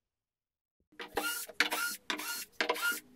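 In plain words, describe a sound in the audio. A cordless drill whirs in short bursts, driving screws.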